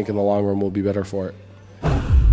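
A young man speaks quietly into a microphone close by.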